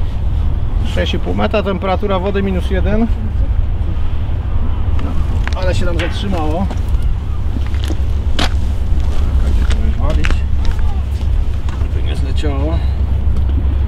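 A man talks outdoors, close by.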